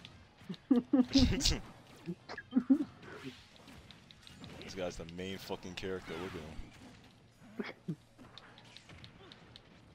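Punchy game impact sounds crack and thud as fighters strike each other.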